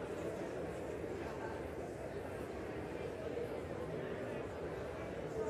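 A large crowd of men and women murmurs and chatters in a big echoing hall.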